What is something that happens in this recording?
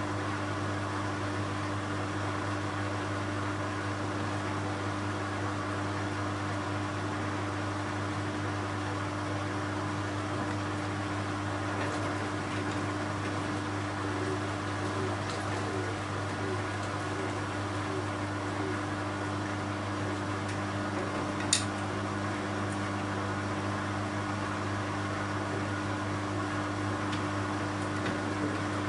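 Laundry and water slosh inside a washing machine drum.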